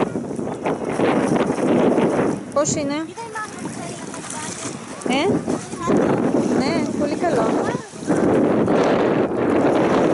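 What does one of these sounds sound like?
Small waves lap gently on a pebbly shore.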